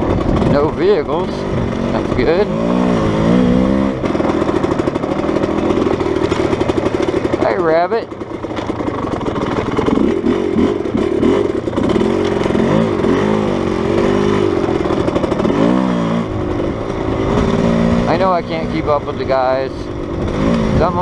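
A motorcycle engine revs and roars loudly, its pitch rising and falling.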